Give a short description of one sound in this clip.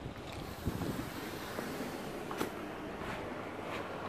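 Sliding glass doors open with a soft whir.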